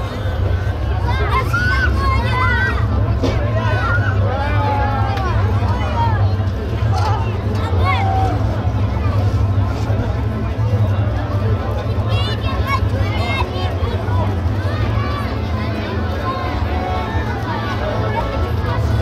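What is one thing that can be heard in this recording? A crowd of men, women and children chatters outdoors.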